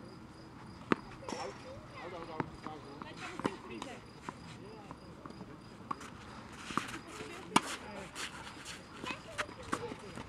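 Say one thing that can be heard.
Tennis balls bounce on a clay court.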